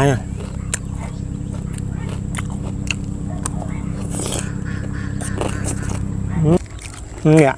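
A man chews and slurps noodles loudly.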